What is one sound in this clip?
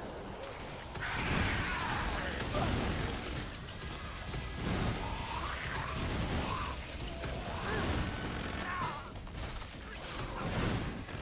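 Monsters roar and screech.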